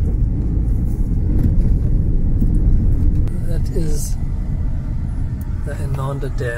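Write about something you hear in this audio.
A car engine rumbles steadily from inside the car as it drives along a rough road.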